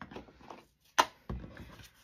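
A rubber stamp taps down onto an ink pad.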